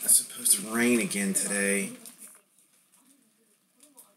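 Card stacks are tapped and pushed together on a table.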